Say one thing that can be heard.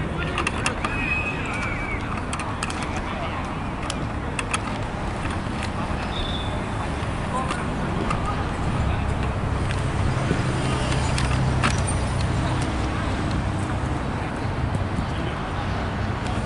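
Football players call out to each other at a distance on an outdoor pitch.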